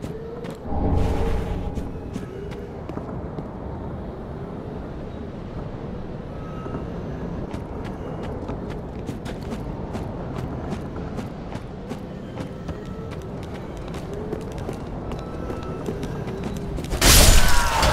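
Armoured footsteps crunch steadily over ground and wooden boards.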